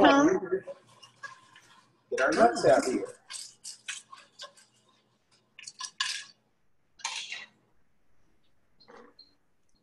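A spatula scrapes and stirs food in a frying pan.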